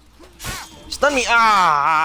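A young man shouts loudly into a microphone.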